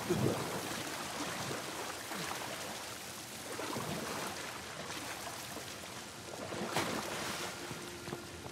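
Water splashes and drips onto rock.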